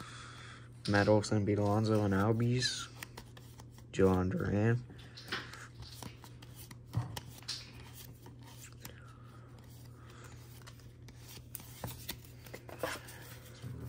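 Trading cards shuffle and flick against each other in a hand.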